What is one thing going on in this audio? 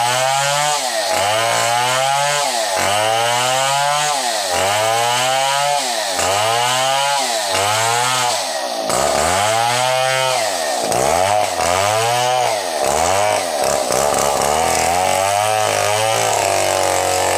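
A chainsaw engine drones loudly and keeps revving up and down as it cuts through wood.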